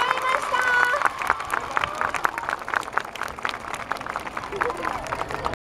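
A large crowd claps and cheers outdoors.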